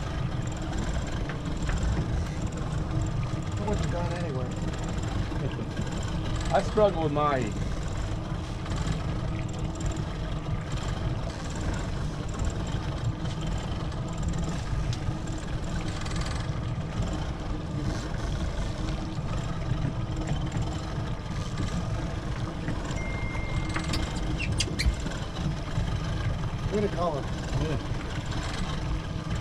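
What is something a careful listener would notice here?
Boat engines idle with a low rumble.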